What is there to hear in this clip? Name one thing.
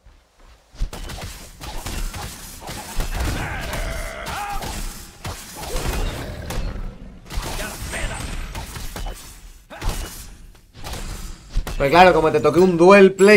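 Game fight sounds of blows and magic blasts crackle and thump.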